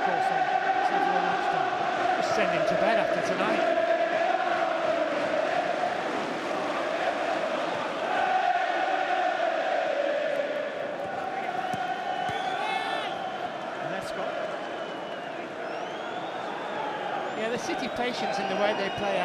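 A large stadium crowd sings and chants loudly throughout.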